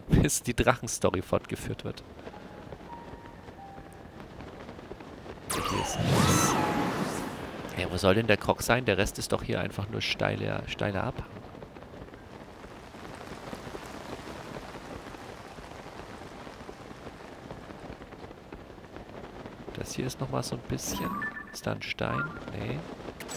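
Wind rushes steadily past during a long glide through the air.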